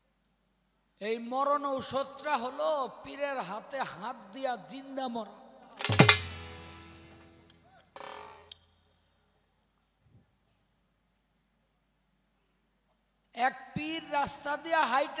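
A man sings loudly through a microphone and loudspeakers.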